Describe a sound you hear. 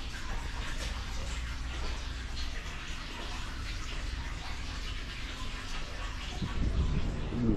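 Wind blows outdoors.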